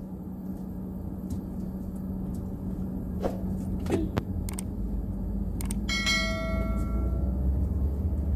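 A car rolls forward with a low rumble.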